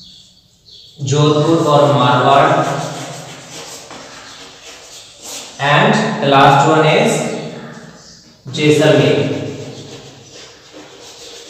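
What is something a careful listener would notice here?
A man speaks loudly and steadily, as if teaching.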